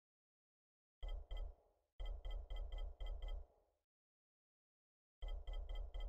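A game menu ticks in quick bursts of clicks.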